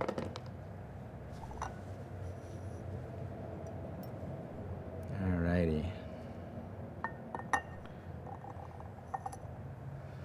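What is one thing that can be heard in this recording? Ceramic cups and lids clink lightly.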